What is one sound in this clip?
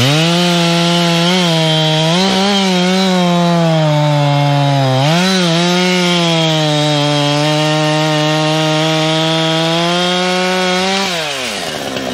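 A chainsaw roars loudly, cutting through a log.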